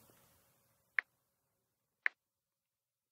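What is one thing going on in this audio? A phone keyboard gives short, soft clicks as keys are tapped.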